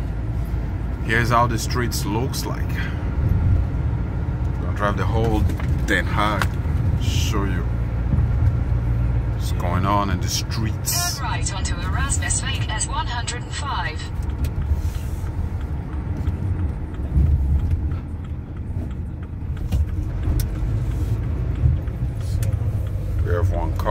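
A vehicle's engine rumbles low and steady as it drives.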